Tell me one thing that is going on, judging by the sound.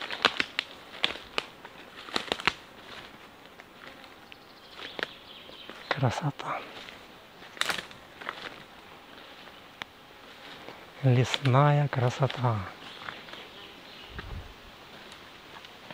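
Footsteps crunch through dry leaves and twigs on a forest floor.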